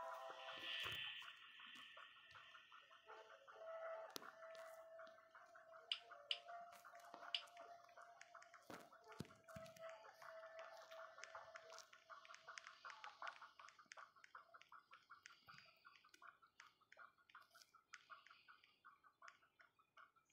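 Footsteps patter quickly and steadily through grass.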